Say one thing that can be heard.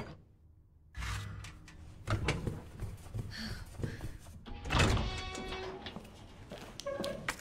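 Footsteps scuff across a hard floor.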